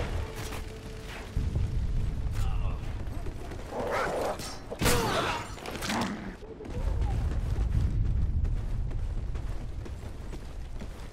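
Footsteps thud quickly on pavement.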